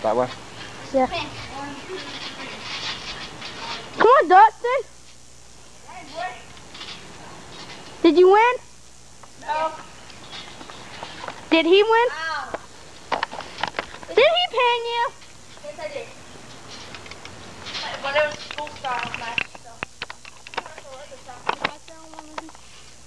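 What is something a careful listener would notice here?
Young boys shout and yell excitedly outdoors.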